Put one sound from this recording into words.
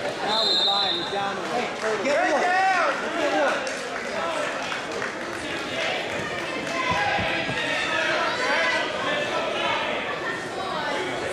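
A crowd of spectators talks and cheers loudly in a large echoing hall.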